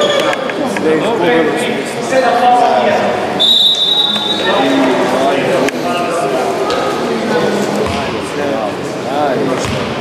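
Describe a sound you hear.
Several men call out and talk in a large echoing hall.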